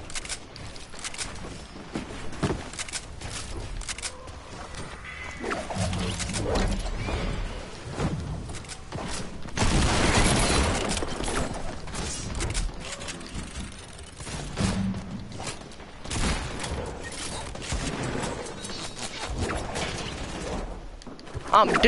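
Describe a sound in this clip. Building pieces clatter and thud into place.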